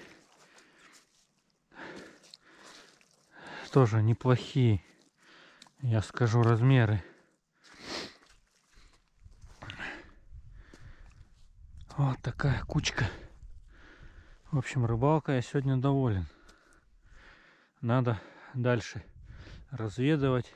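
Wet fish slap and rustle as a hand sorts through a pile of them.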